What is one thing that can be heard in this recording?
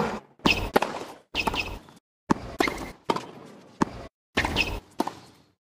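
A tennis ball is struck back and forth with sharp pops of a racket.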